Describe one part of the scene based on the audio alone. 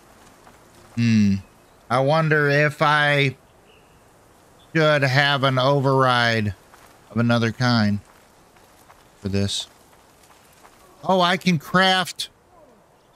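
An elderly man talks with animation through a microphone, in short bursts.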